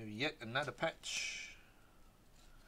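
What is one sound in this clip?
Trading cards slide and rustle against each other in hands.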